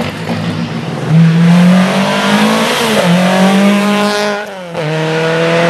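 A small rally hatchback revs hard through the bend.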